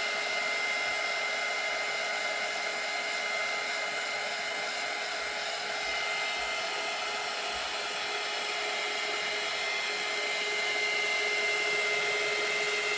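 A heat gun whirs and blows steadily close by.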